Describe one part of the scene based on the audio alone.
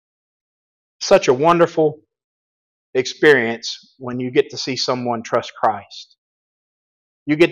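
A middle-aged man speaks calmly into a microphone, in bursts with pauses.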